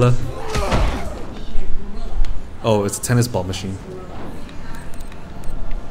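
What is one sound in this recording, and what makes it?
Heavy blows thud against a body.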